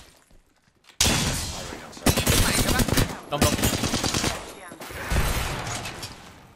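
Automatic gunfire rattles in rapid, loud bursts.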